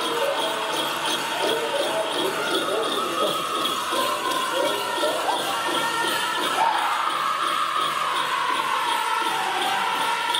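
Bells on dancers' legs jingle in a steady rhythm as they step.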